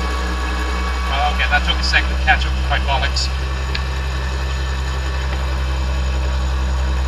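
A tank engine rumbles steadily as the tank rolls slowly forward.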